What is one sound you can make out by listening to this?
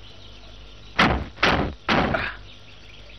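Car doors slam shut.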